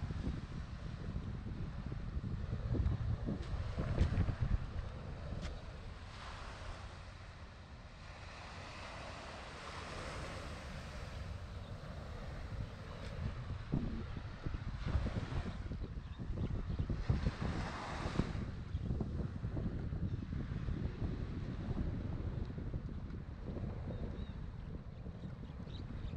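Wind blows in gusts against a microphone outdoors.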